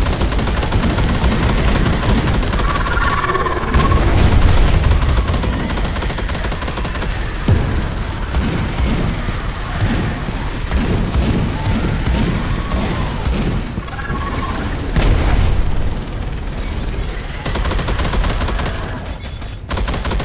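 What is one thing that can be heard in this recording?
A flamethrower roars in rapid bursts.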